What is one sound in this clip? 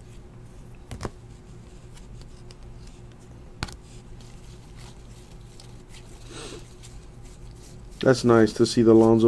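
Stiff cards rustle and tap softly as they are handled close by.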